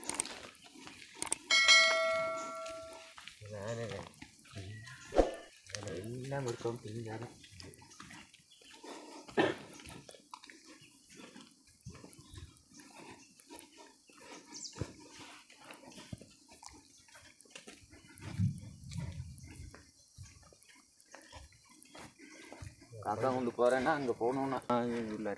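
Footsteps crunch softly on a dirt path.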